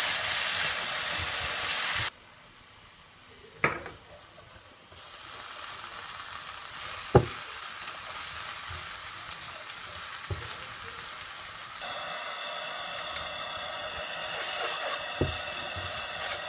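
A silicone spatula stirs and scrapes diced apple in a nonstick frying pan.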